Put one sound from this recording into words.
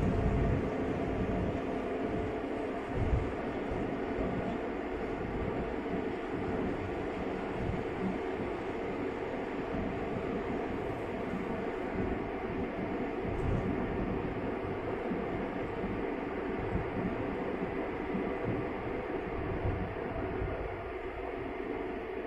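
A car hums steadily as it drives along a highway.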